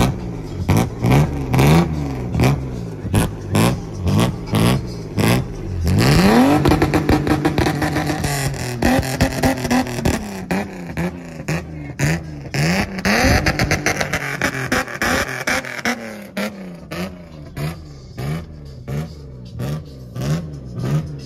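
A car engine revs hard in short, repeated bursts close by.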